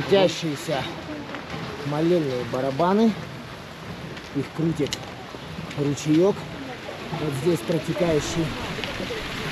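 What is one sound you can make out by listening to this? A woman talks nearby.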